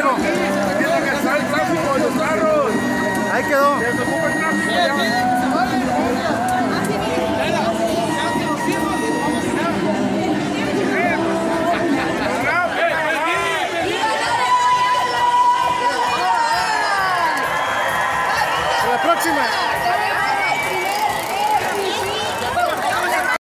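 A large crowd chatters and calls out all around in an open-air stadium.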